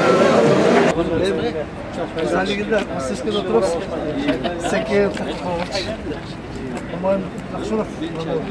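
Men talk calmly outdoors nearby.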